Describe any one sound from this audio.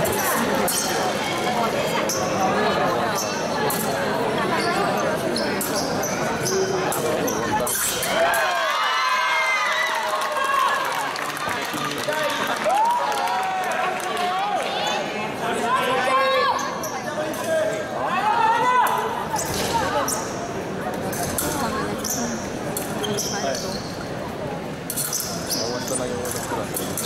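Fencing blades clink and clash sharply.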